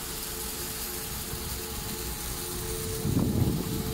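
Handheld flares hiss as they burn.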